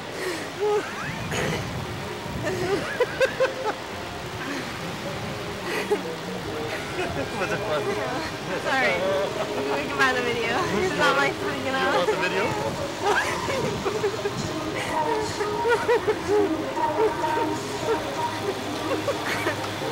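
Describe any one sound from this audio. A young woman talks excitedly close by.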